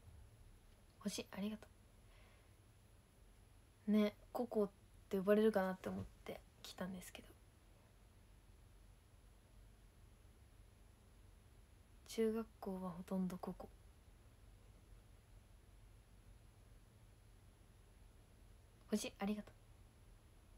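A young woman speaks softly and briefly, close to a microphone, in short bursts.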